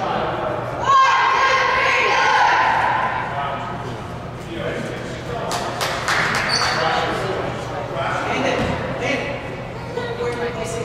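Children and adults shout and call out in an echoing gym.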